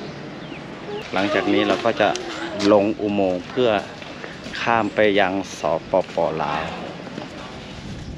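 A young man talks with animation, close up.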